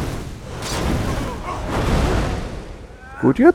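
Flames roar in a burst.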